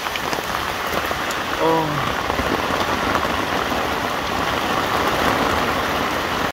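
Rain patters on a plastic tarp.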